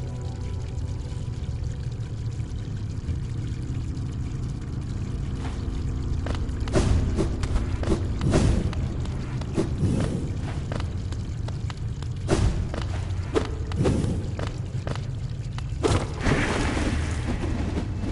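Low droning music plays steadily throughout.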